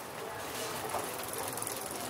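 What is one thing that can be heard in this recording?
A bicycle rolls past on cobblestones.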